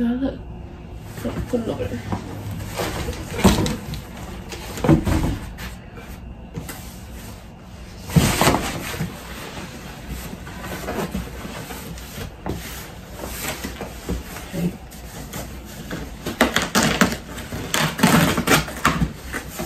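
Cardboard boxes rustle and thump as they are handled.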